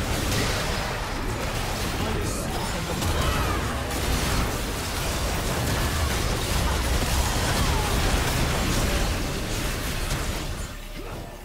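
Spell blasts and weapon clashes crackle and boom in a game battle.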